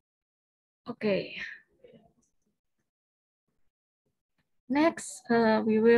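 A young woman speaks calmly through a microphone on an online call.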